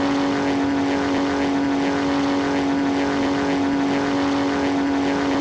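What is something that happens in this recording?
A propeller aircraft engine drones steadily and loudly.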